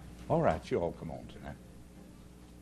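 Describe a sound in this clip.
An elderly man speaks with emphasis through a microphone.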